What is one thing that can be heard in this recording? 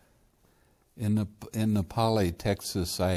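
An elderly man speaks calmly into a clip-on microphone, close by.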